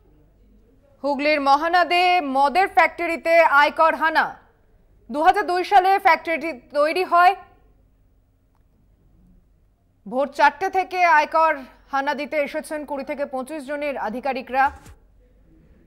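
A woman speaks rapidly and with animation, close by.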